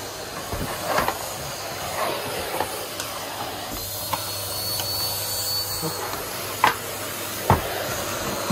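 A vacuum cleaner nozzle knocks against wood.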